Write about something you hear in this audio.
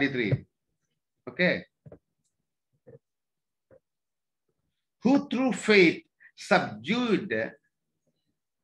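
A man speaks close up in bursts, pausing between phrases.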